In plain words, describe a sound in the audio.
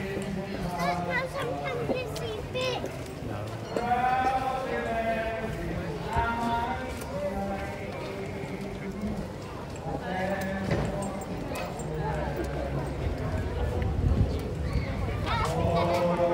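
A crowd of people chatters in the background outdoors.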